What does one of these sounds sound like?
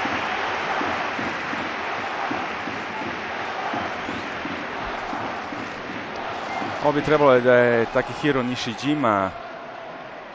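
A large stadium crowd murmurs and roars in the distance.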